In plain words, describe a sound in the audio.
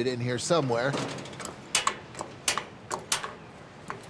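Grill control knobs click as they are turned.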